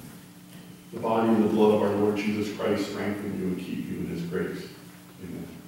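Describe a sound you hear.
An older man speaks calmly into a microphone, heard through a loudspeaker in an echoing room.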